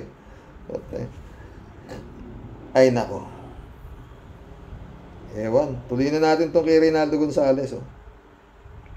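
A middle-aged man speaks calmly, close up.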